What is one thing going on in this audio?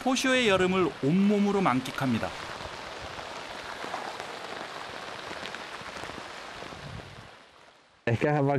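Heavy rain patters steadily on the ground.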